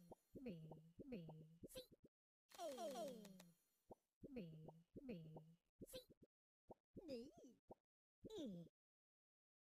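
Cartoon creatures squeak and chatter in short bursts.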